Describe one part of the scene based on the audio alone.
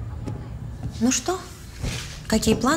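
A woman speaks nearby in a calm voice.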